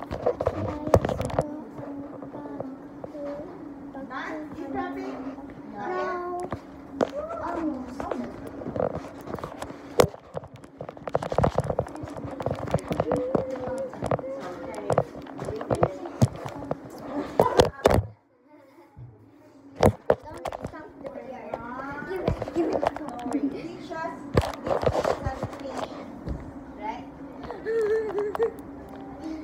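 A phone's microphone rubs and knocks as it is handled.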